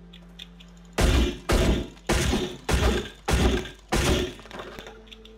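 A hatchet strikes a wooden crate with heavy repeated thuds.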